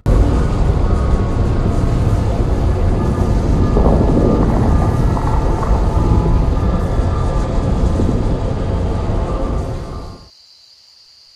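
A deep, roaring magical rumble surges steadily and then cuts off.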